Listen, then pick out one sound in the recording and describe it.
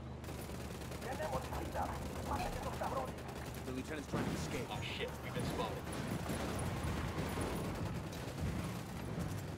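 Video game gunfire crackles in bursts.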